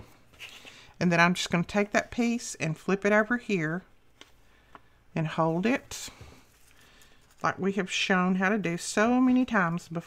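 Paper rustles and crinkles as it is folded by hand.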